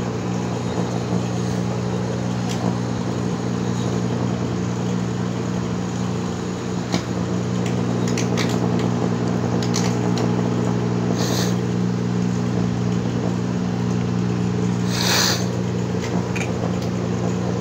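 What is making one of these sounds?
An electric arc crackles and hisses with sharp snaps.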